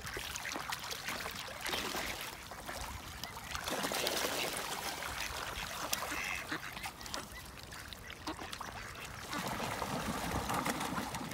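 Ducks quack noisily.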